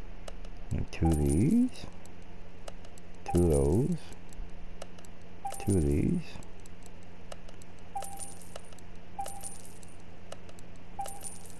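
Short electronic menu blips sound now and then.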